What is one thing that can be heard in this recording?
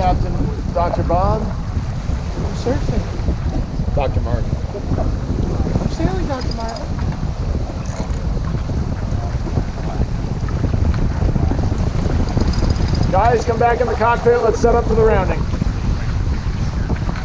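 Water rushes and splashes along a boat's hull.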